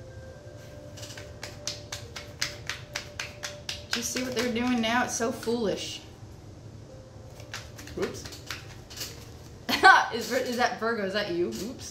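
Playing cards riffle and flick quickly as they are shuffled.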